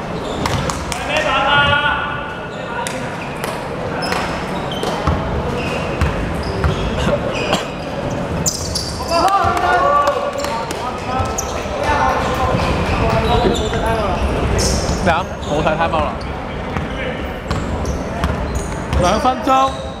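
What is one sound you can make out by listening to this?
Young men shout to each other across the court.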